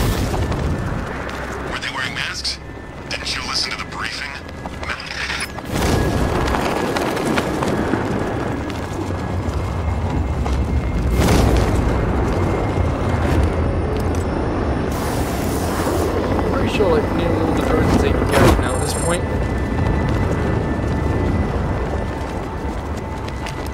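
A cape flaps and snaps in the wind.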